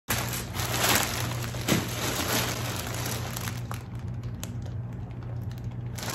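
Plastic mailer bags crinkle and rustle.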